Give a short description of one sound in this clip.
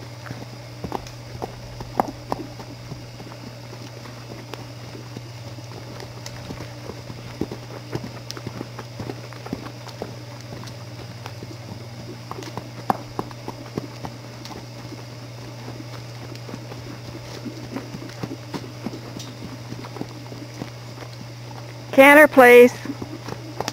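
A horse's hooves thud on soft dirt as it trots in circles.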